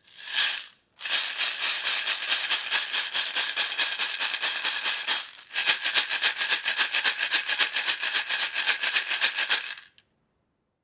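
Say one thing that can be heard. Dried beans rattle loudly inside a plastic bottle as it is shaken.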